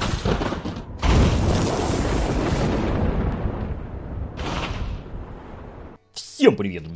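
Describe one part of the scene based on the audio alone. Thunder rumbles and crashes.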